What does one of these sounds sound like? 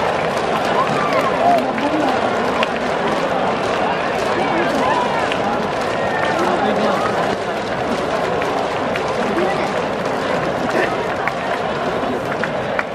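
Men call out and shout excitedly nearby.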